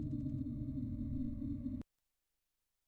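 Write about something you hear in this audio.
A low, rumbling drone from a video game plays, then cuts off suddenly.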